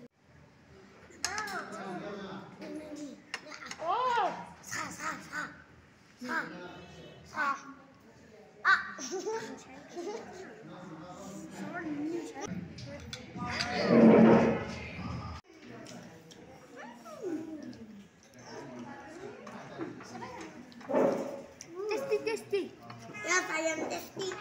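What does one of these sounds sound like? Young children talk and laugh excitedly close by.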